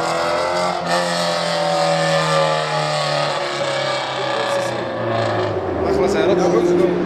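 A car engine roars loudly as a car speeds away, its pitch dropping.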